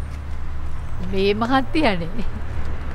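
A middle-aged woman speaks briefly, close by.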